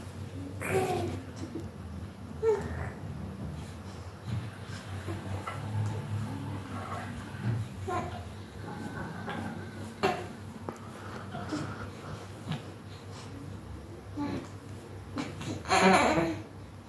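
A baby coos and squeals nearby.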